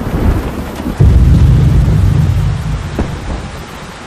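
A deep rumble rolls as buildings collapse far off.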